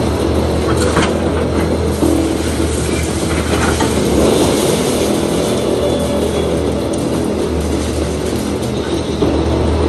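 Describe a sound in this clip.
Concrete and rubble crash and crumble down.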